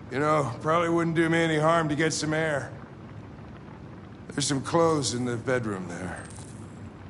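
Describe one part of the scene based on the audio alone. An older man speaks in a weary, rough voice.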